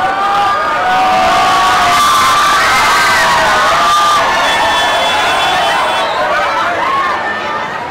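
Many young people scream excitedly.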